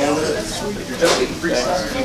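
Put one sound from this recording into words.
Two men talk briefly up close.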